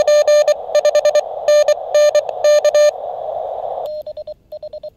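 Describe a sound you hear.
Static hisses briefly from a small radio.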